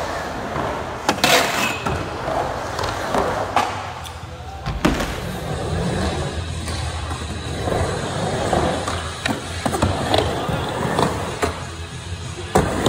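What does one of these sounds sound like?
Skateboard wheels roll and rumble on a wooden ramp.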